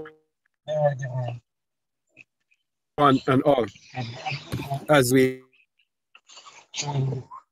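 A man speaks in bursts with animation through an online call.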